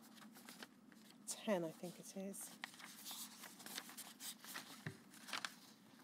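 Paper rustles as pages are turned.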